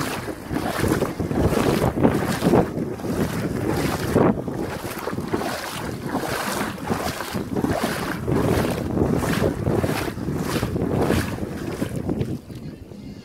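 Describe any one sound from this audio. Wind buffets the microphone outdoors in strong gusts.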